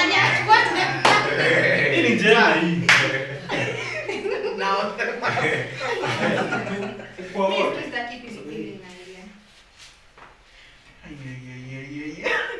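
Several young men talk and laugh loudly with excitement close by.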